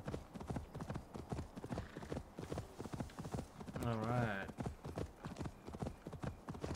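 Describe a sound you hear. A horse's hooves thud in a quick, steady gallop over soft ground.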